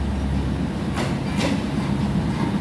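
Metal wheels clank on the rail joints.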